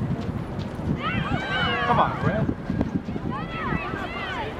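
Young players shout from across the field.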